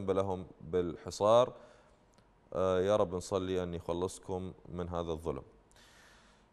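A man speaks calmly into a studio microphone.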